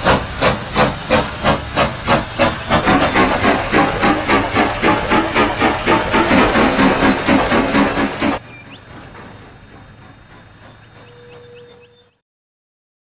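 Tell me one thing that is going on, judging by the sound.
A steam locomotive chuffs in a quick, steady rhythm, then grows fainter.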